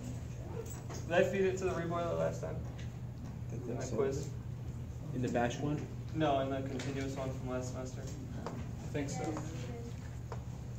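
A man speaks calmly, lecturing.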